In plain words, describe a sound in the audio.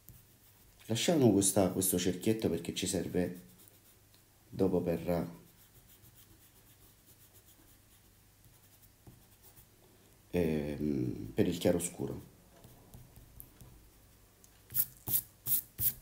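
An eraser rubs across paper.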